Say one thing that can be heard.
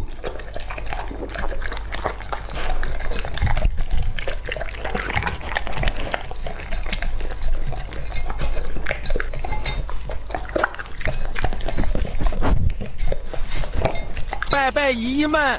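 A dog laps and licks at a plate with wet smacking sounds.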